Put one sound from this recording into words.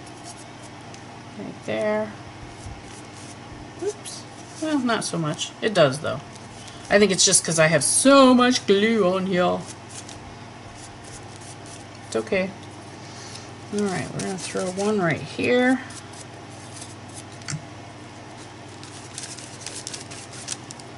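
A brush dabs and brushes softly on paper.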